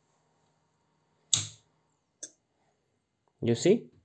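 A small switch clicks once.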